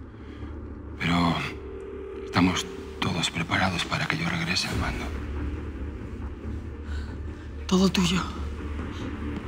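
A man speaks in a low, calm voice up close.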